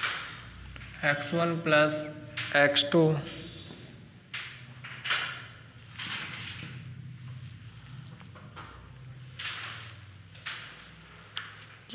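A man speaks calmly, as if explaining, close by.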